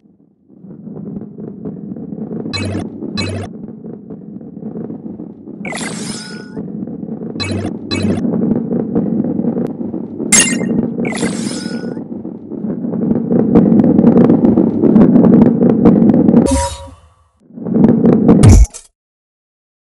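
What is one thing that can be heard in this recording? A heavy ball rolls and rumbles along a wooden track.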